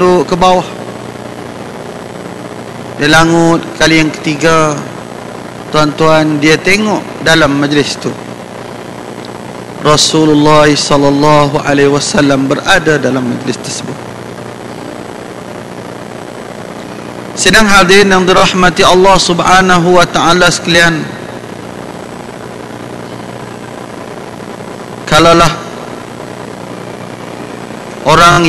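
A man speaks through a microphone with a slight echo, in bursts separated by pauses.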